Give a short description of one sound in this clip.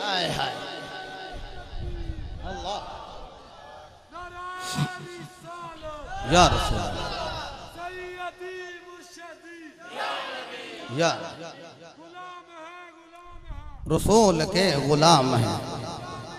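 A man chants melodiously through a microphone and loudspeaker.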